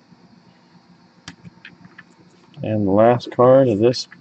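The latch of a hard case clicks open.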